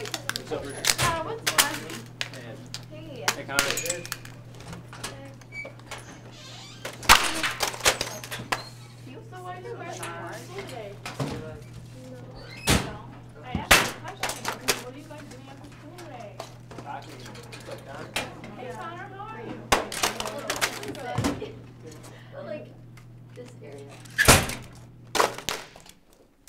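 Metal locker doors bang and clank shut.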